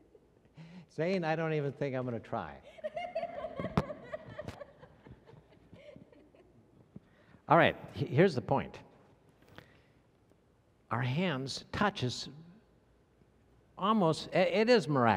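An elderly man speaks calmly over a microphone in a large echoing room, pausing between phrases.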